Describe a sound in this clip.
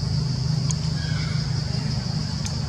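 A baby monkey squeaks faintly.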